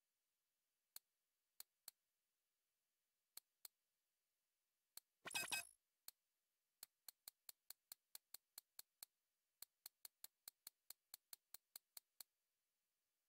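Short menu clicks tick as items are scrolled through, quickening into a fast run.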